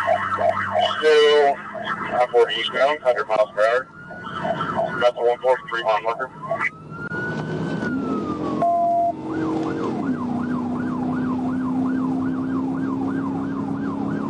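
A car drives with a steady road rumble.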